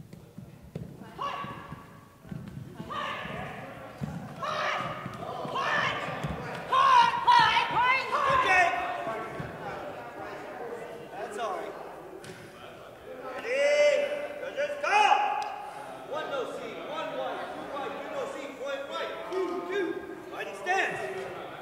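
Martial artists shout sharply as they spar in a large echoing hall.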